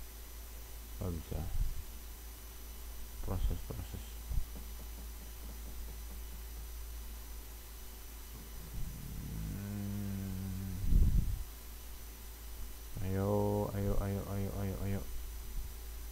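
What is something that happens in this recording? A young man speaks now and then into a microphone close by, in short bursts.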